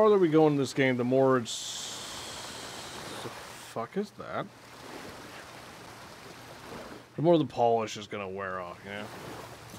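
Water splashes softly as a swimmer paddles through it.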